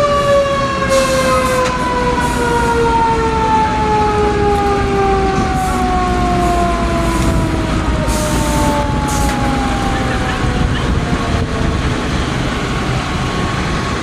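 Truck engines rumble at idle.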